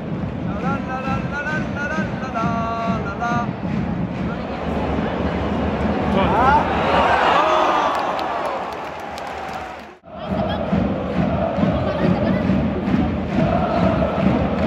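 A large stadium crowd cheers and chants loudly.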